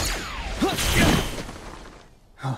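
A heavy blow lands with a loud whoosh.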